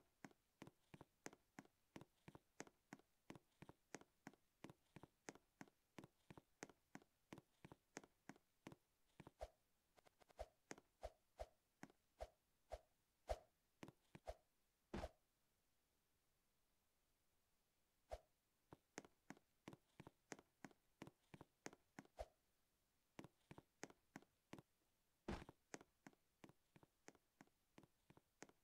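Quick, even footsteps tap on a hard surface.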